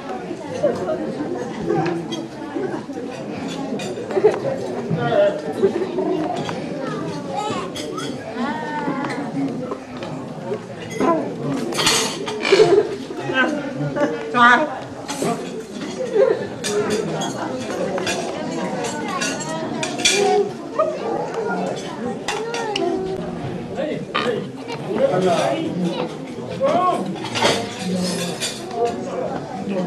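A crowd of men and women chatter loudly all around in an echoing hall.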